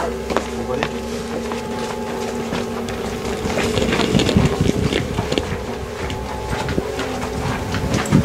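Footsteps walk along a hard hallway floor.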